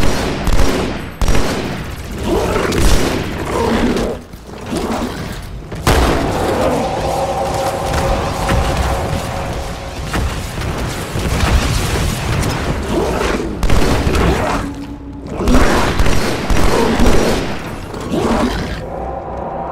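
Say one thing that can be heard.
Gunfire bursts out in rapid shots.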